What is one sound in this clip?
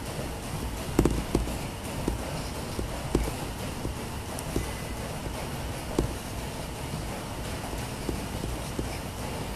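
Soft knocks of handling sound close by.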